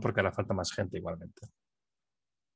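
A middle-aged man speaks calmly through a headset microphone over an online call.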